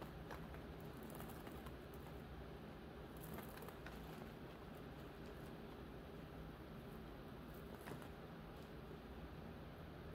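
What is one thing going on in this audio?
Small glass beads click softly against each other in a palm.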